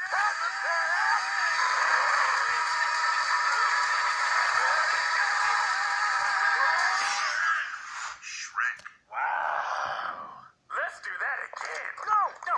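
A man speaks with animation, heard through a small loudspeaker.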